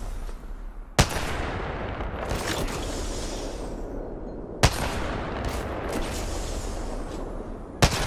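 A sniper rifle fires loud single shots, each followed by a ringing echo.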